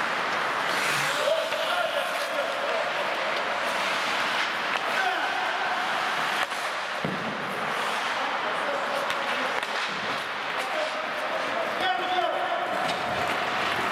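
Young men call out to one another across an echoing rink.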